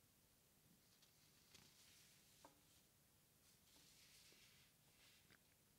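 Paper sheets rustle.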